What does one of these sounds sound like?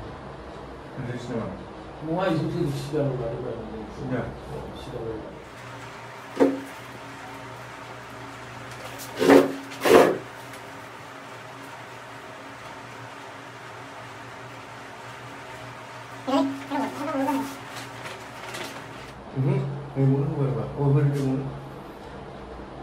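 A man talks nearby in short bursts.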